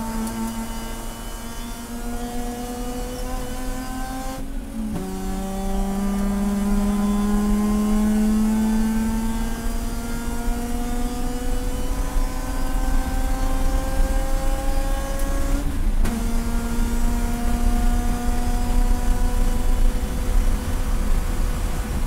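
A car engine roars loudly from inside, rising in pitch as it accelerates and dropping briefly at each gear change.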